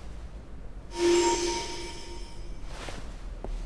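A bright magical shimmer rings out and fades.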